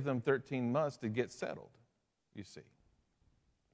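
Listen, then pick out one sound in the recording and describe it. A middle-aged man speaks calmly and expressively through a microphone in a room with a slight echo.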